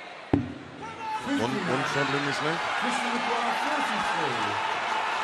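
A large crowd cheers and sings loudly.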